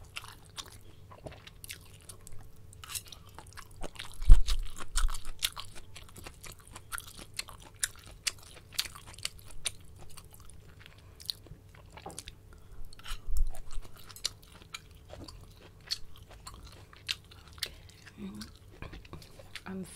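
Chopsticks click and tap against a porcelain bowl close by.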